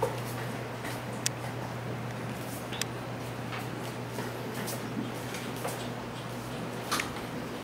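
Small puppies' claws tap and patter on a hard floor.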